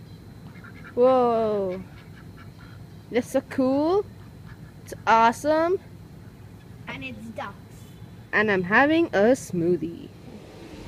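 Ducks quack loudly.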